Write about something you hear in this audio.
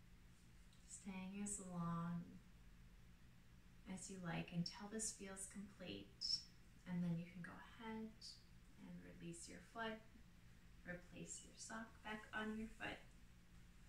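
A young woman speaks calmly and softly into a close microphone.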